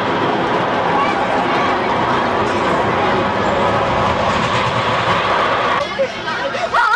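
A roller coaster train roars loudly along its track.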